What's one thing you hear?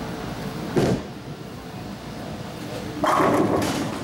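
A bowling ball rolls down a lane with a low rumble.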